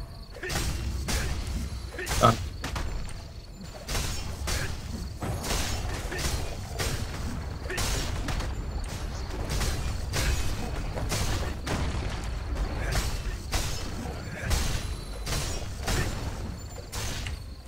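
Sword strikes and magic spells crash and whoosh in quick bursts.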